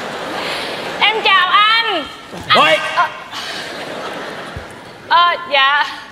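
A woman speaks loudly in a high, animated voice.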